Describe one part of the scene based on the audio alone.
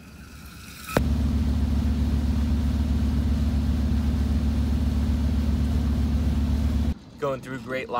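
A boat engine hums steadily and loudly.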